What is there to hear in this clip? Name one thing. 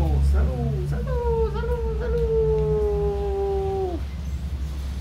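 A man sings a long, held high note that slowly falls away.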